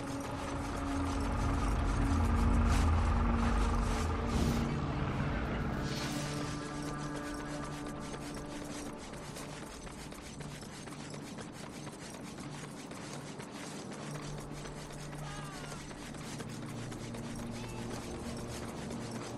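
Quick footsteps slap on pavement as a figure runs.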